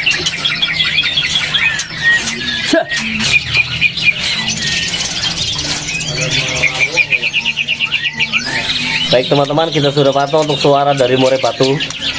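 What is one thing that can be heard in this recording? A songbird sings close by in loud, varied whistles, trills and chirps.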